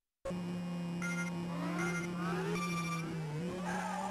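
Electronic beeps count down before a race starts.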